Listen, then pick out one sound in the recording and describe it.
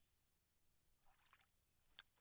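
A fishing rod swishes through the air as a line is cast.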